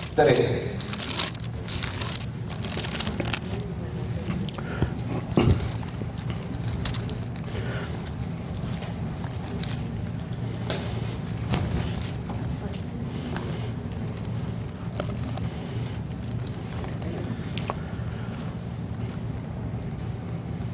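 A man speaks steadily into a microphone over loudspeakers in a large room.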